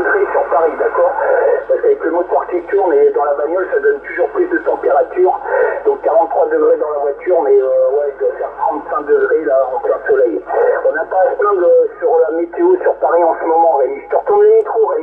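A man talks over a crackly radio loudspeaker, sounding thin and muffled.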